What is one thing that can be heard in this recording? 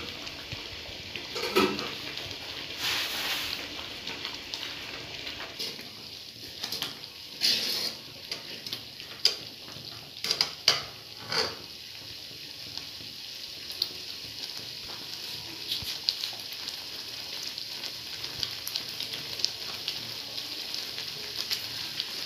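Liquid bubbles and sizzles steadily in a pan.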